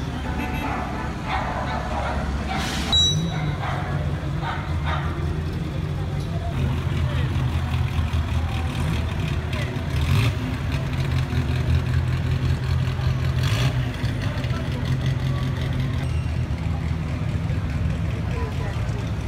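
Vintage car engines rumble and idle loudly close by.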